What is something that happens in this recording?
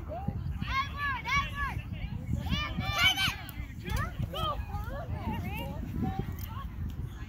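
Children shout across an open field.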